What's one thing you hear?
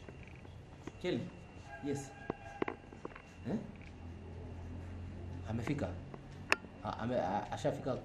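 A young man speaks on a phone close to a microphone, in short bursts with pauses.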